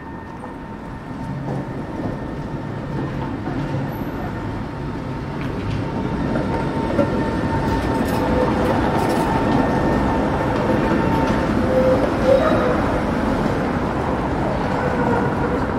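A tram rumbles past close by, its motor whining.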